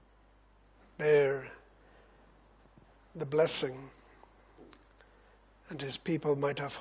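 An older man speaks slowly and emphatically into a microphone, with long pauses.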